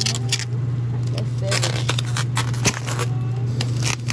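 A plastic bag crinkles as it is pulled open.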